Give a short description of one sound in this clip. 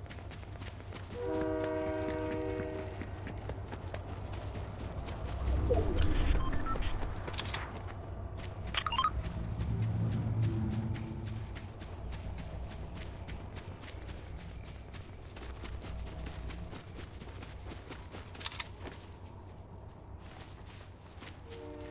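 Quick footsteps patter over grass and stony ground.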